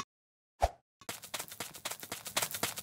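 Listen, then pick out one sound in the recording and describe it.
Quick footsteps patter along steadily.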